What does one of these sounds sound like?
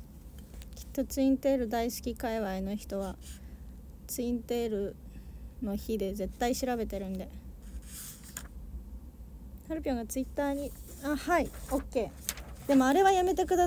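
A young woman talks softly and close by.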